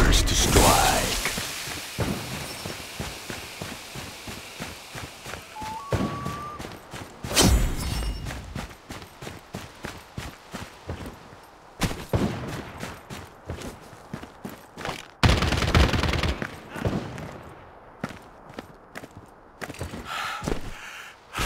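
Footsteps thud quickly over the ground.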